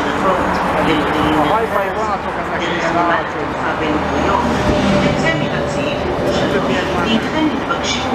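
A second train rumbles in along the tracks.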